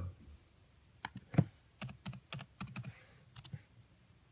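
Keys click on a keyboard as a short word is typed.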